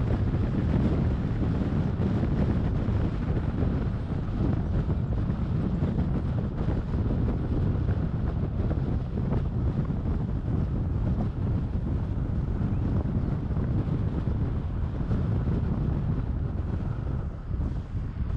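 Tyres roll over smooth asphalt with a low rumble.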